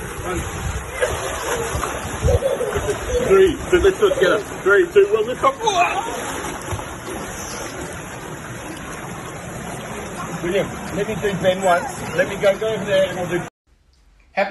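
Young children squeal and shout in the water.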